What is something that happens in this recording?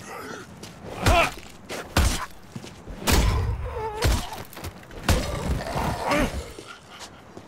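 Heavy blows thud repeatedly into a body.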